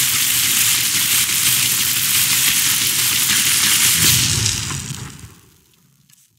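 Lightning crackles and hisses loudly from a spell.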